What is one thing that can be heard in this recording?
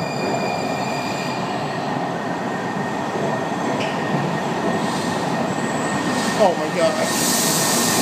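A subway train rumbles toward the listener through an echoing tunnel.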